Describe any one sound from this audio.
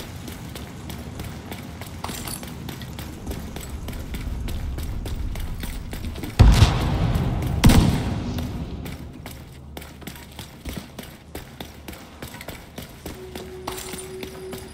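Fire crackles nearby.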